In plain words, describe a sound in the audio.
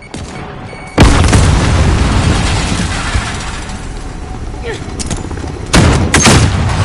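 Gunfire blasts loudly in short bursts.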